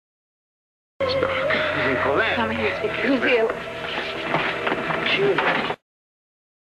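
Several people cry out and scuffle in a room.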